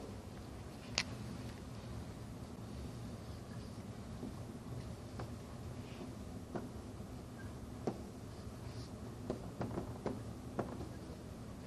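A marker taps and scratches on a whiteboard.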